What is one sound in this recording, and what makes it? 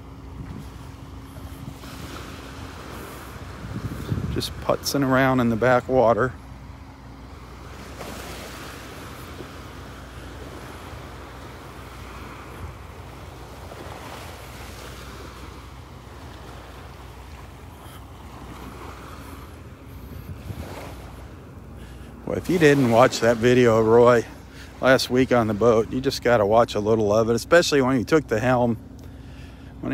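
Small waves lap gently on the shore.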